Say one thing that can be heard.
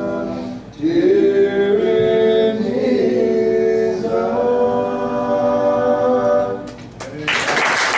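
A guitar plays along with the singing.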